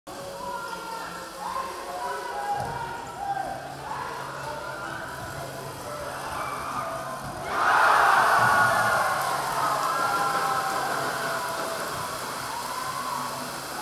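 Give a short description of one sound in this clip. A crowd in a large echoing hall chatters and calls out.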